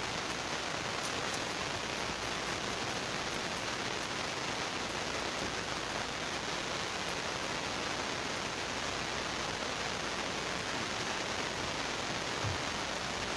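A knife chops on a wooden cutting board.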